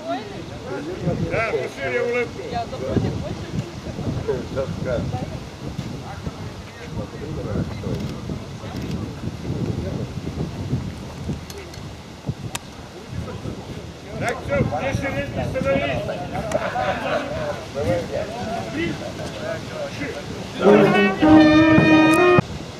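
A crowd of men chatters and talks nearby outdoors.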